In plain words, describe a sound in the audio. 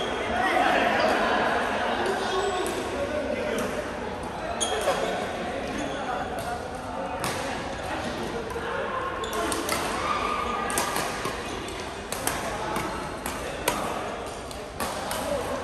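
Men call out and chatter across a large echoing hall.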